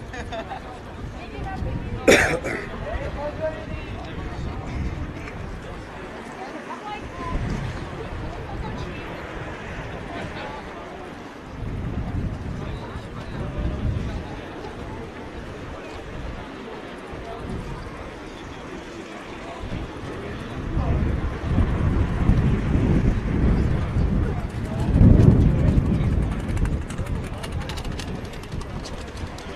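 Many feet march and shuffle on pavement.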